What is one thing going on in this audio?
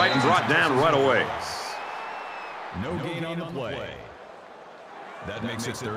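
A stadium crowd cheers and roars.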